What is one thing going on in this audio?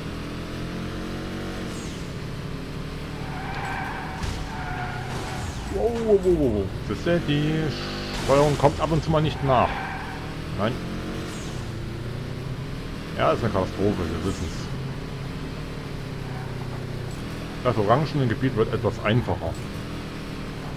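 A car engine roars steadily, revving up and down.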